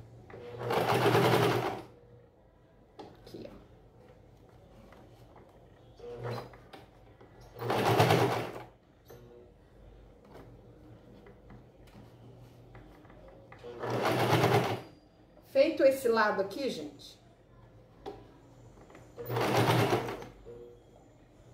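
A sewing machine runs in short bursts, stitching fast.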